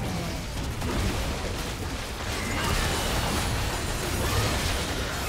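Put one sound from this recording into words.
Game spell effects crackle and whoosh in a busy battle.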